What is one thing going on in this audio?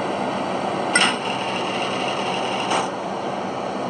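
A garage door rattles open.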